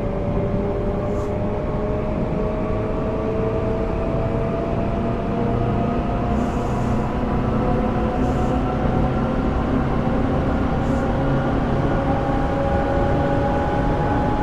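An electric train motor whines, rising slowly in pitch as the train speeds up.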